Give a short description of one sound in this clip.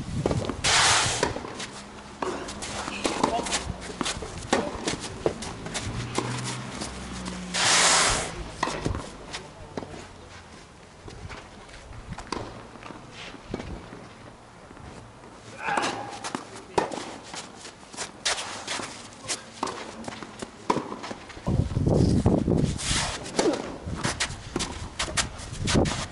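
Sneakers scuff and patter on a hard court.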